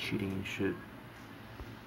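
A young man speaks briefly and quietly into a microphone.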